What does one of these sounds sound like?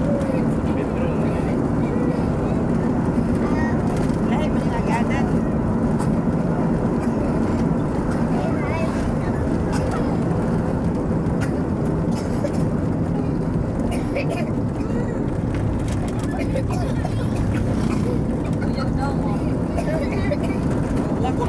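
A vehicle's engine rumbles steadily as it drives along.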